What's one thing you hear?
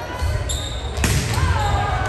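A volleyball is struck with a loud smack.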